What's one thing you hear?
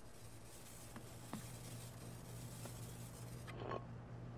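Heavy blows thud and crunch against bodies.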